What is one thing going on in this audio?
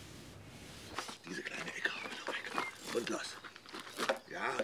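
An elderly man talks calmly outdoors.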